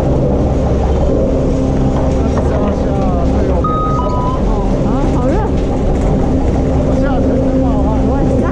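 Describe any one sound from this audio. Chairlift machinery hums and rumbles steadily.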